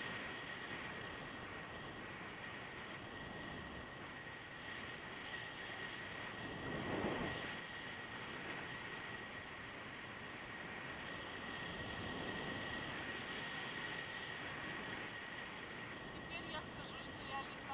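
Wind rushes steadily past a microphone.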